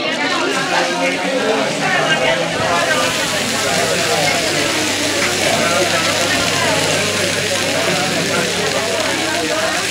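A woman talks close to a microphone.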